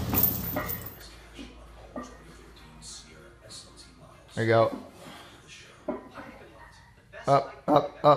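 Weight plates clank on a barbell.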